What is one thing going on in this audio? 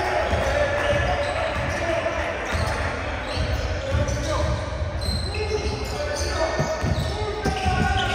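A basketball bounces repeatedly on a wooden court, echoing in a large hall.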